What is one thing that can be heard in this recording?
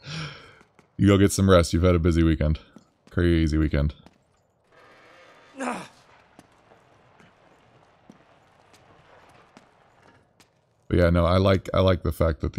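A man speaks urgently, close by.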